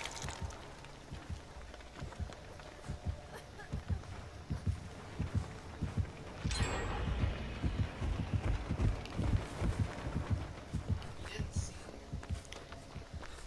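Footsteps thud quickly over soft ground.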